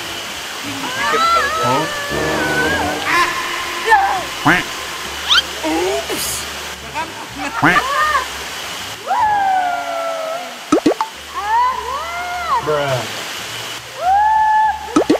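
A young woman laughs and talks with animation.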